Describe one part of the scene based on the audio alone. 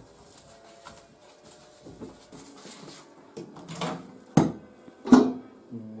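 Dishes and utensils clatter and knock on a counter.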